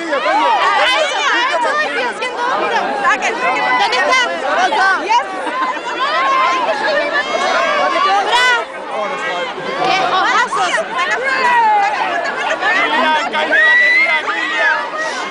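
A large crowd of young women chatter, scream and call out excitedly close by.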